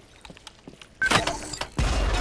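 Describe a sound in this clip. A gun fires with a sharp crack.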